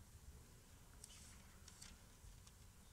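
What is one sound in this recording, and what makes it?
Pages of a book rustle.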